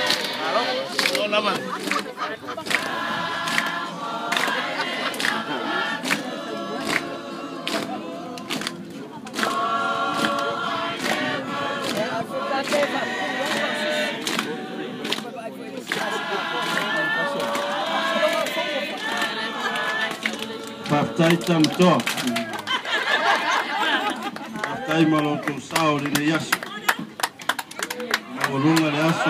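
Hands clap in rhythm.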